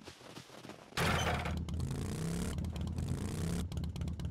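A motorbike engine runs steadily.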